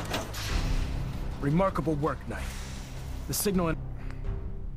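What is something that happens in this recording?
A man speaks calmly in a deep voice, heard through a speaker.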